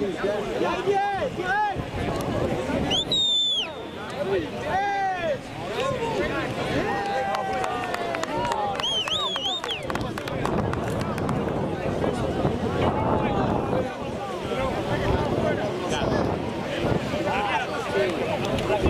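Young men shout and call to each other across an open field.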